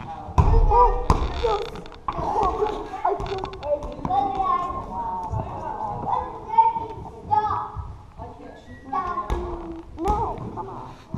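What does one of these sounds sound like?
A ball thumps on a wooden floor.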